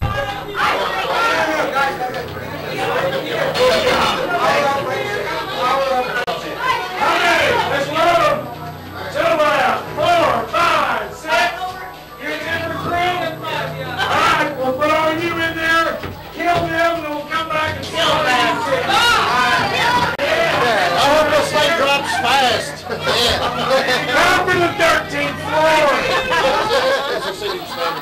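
Several young men and women talk and laugh excitedly close by.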